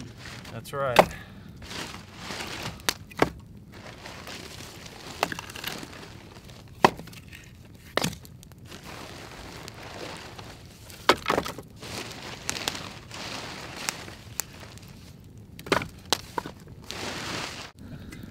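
Wooden logs knock and thud as they are stacked.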